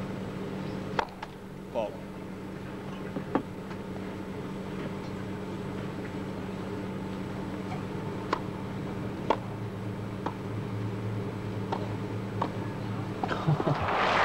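A tennis ball is struck with sharp pops of a racket.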